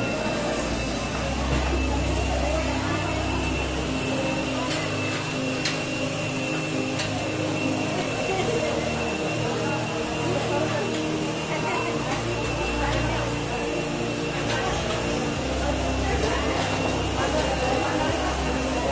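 Several women chat and talk over one another nearby.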